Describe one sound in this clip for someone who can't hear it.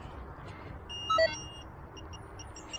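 A metal detector beeps briefly.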